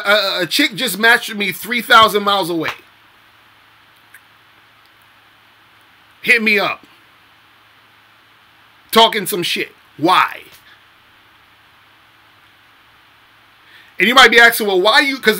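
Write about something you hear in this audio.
A young man speaks close to a microphone, with long pauses between phrases.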